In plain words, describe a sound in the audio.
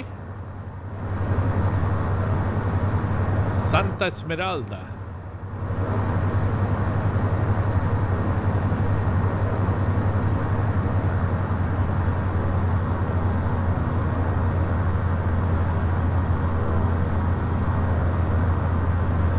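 A turboprop engine drones steadily, heard from the cockpit.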